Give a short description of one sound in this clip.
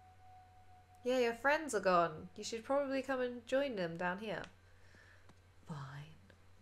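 A young woman talks with animation into a headset microphone, close by.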